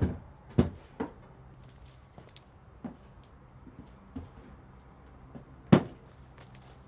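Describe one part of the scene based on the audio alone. Wooden poles knock and clatter together inside a wooden shed.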